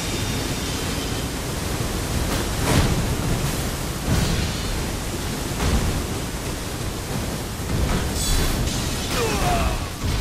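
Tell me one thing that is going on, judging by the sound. Heavy weapons clash and thud in repeated blows.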